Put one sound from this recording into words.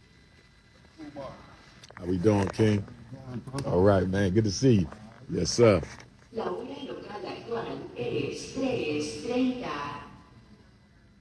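A middle-aged man speaks close to a phone microphone.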